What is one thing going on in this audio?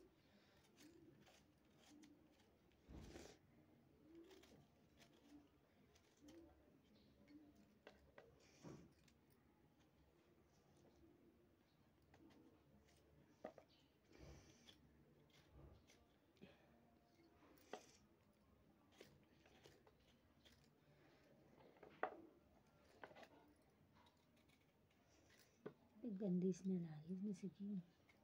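A knife scrapes and clicks as it peels and cuts vegetables.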